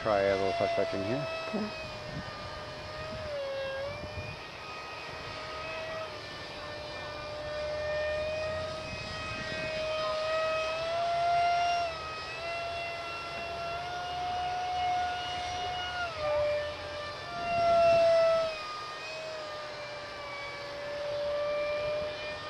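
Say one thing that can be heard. A jet engine whines high overhead, its pitch shifting up and down.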